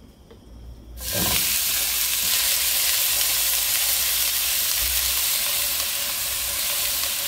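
Chicken sizzles loudly in a hot pan.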